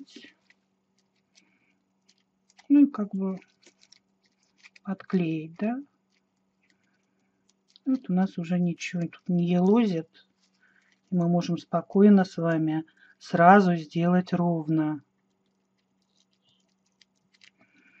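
Aluminium foil crinkles as hands squeeze it into a ball.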